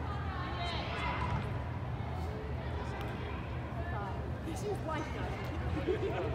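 Young women shout and call out in a large echoing hall.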